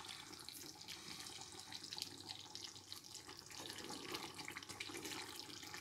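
A wooden spoon stirs a thick stew in a pan.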